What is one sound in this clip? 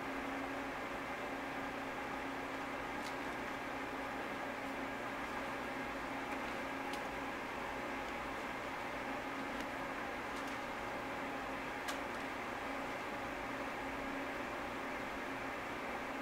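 A puppy drags a plastic toy across the floor.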